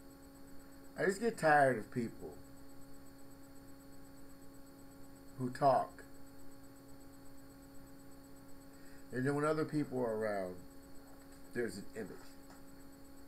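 A middle-aged man speaks close to a microphone in short bursts.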